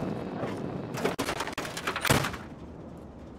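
A heavy door bangs open.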